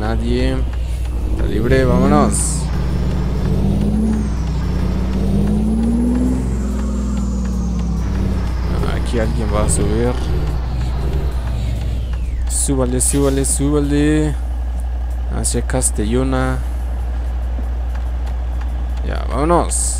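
A bus engine hums steadily, rising and falling in pitch as it drives.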